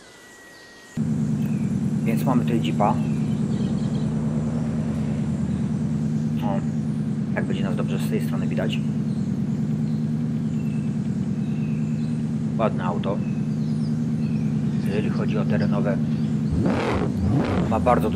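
An off-road vehicle's engine idles with a low, steady rumble.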